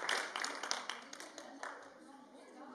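Feet shuffle and stamp on a stage floor.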